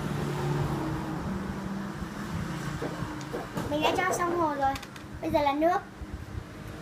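A young girl speaks calmly close by.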